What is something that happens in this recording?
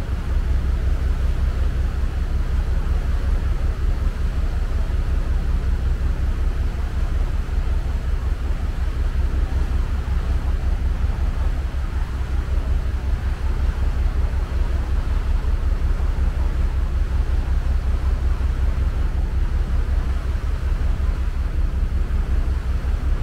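Strong wind rumbles and buffets steadily outdoors.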